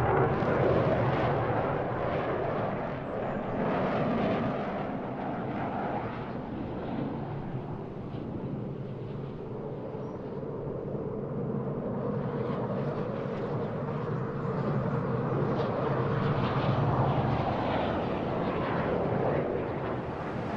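A jet engine roars overhead, rising and falling as the aircraft loops.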